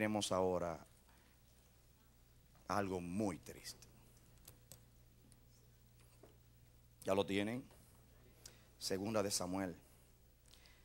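A middle-aged man speaks slowly and earnestly into a microphone, with long pauses.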